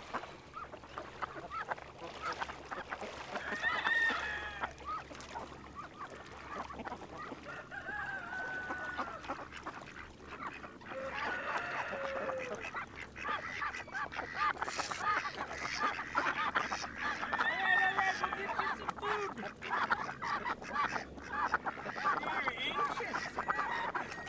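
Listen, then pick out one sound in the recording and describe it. Ducks quack and call close by.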